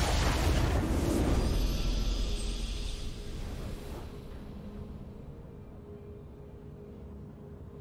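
A triumphant fanfare plays and slowly fades.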